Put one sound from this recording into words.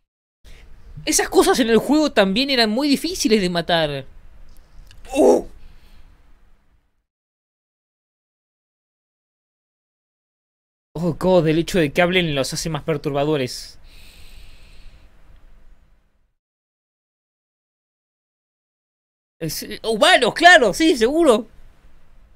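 A young man speaks with animation, close into a microphone.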